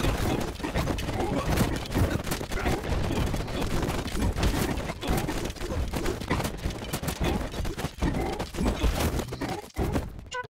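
Weapons clash and strike again and again in a noisy game battle.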